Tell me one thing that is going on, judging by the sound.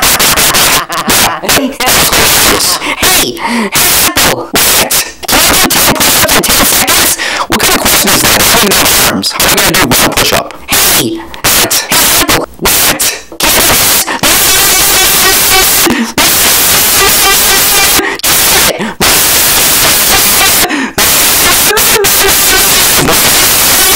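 A second cartoonish male voice talks back with annoyance.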